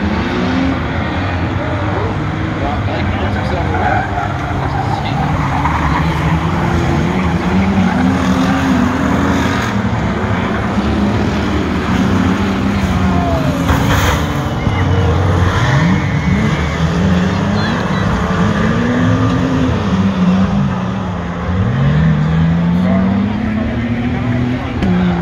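Race car engines roar and rev loudly nearby, rising and falling in pitch.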